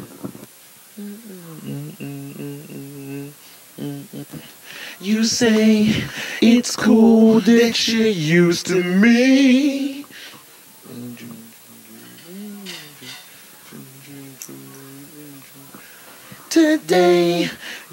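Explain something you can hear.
A man sings with feeling, close by.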